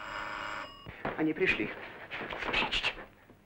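Two men scuffle, with thumps and rustling.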